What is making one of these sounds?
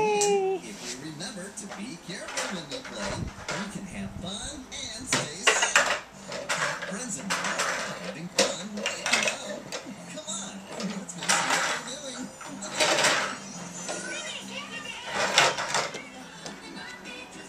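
Plastic toys clatter and knock together.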